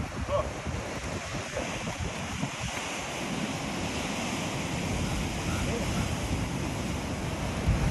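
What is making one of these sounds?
Waves crash against rocks below.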